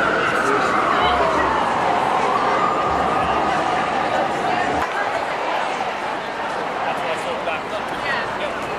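A large crowd chatters and cheers loudly outdoors.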